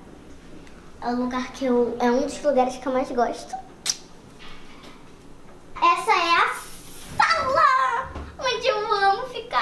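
A young girl talks playfully close by.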